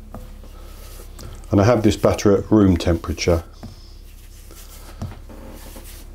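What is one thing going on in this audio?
Fingers rub flour softly in a bowl.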